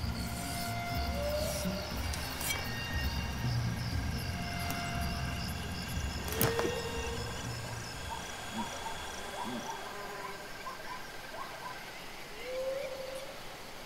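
Birds chirp and call in the open air.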